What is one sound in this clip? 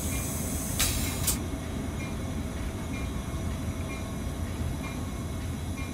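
Train wheels click rhythmically over rail joints.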